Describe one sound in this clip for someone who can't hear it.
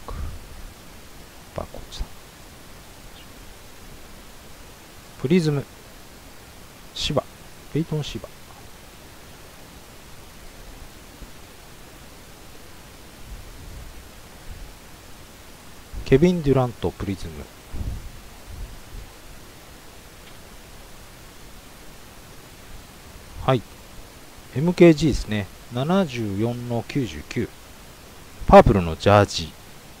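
Trading cards rustle and click as they are shuffled by hand.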